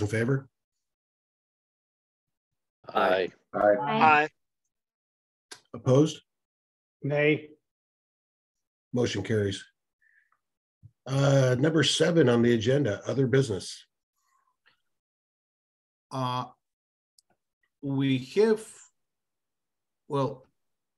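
A man speaks calmly in short phrases through a microphone on an online call.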